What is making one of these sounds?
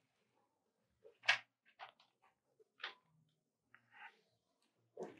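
A pencil scratches in quick strokes across paper.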